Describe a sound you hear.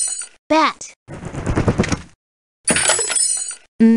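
A wooden crate smashes apart with a crash.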